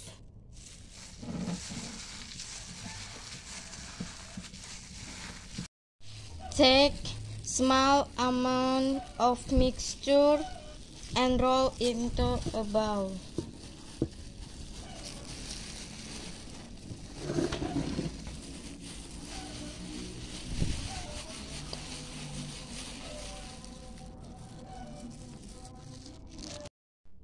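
A plastic glove crinkles as a hand kneads a crumbly mixture in a bowl.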